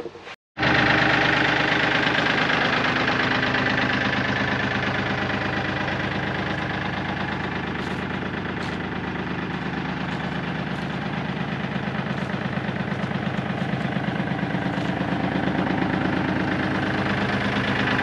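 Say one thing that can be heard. A tractor engine runs with a steady, throbbing rumble close by.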